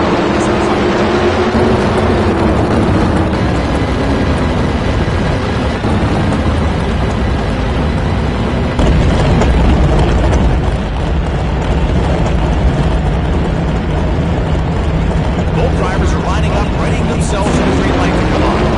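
A race car engine revs loudly and rumbles throughout.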